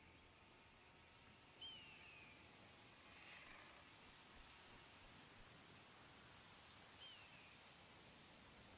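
A light breeze rustles through leaves outdoors.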